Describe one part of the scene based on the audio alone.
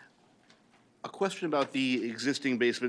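A man speaks into a microphone, loud and close.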